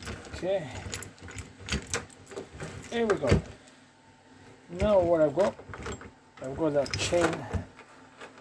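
Metal gears clink and rattle as they are handled close by.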